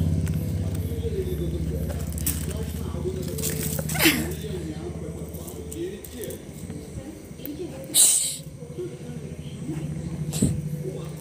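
A small dog whines up close.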